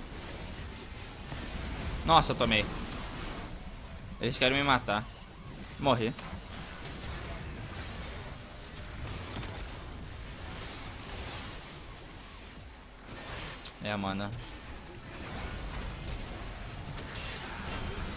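Spell effects whoosh and crackle during a game battle.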